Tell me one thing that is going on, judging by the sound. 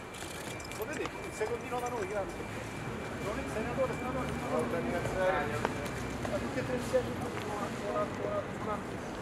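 Men talk nearby in a crowd, murmuring.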